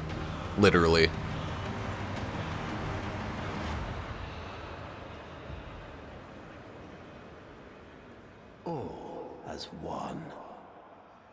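A man speaks slowly and dramatically.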